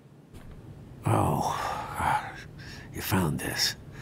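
An elderly man speaks warmly, a little surprised.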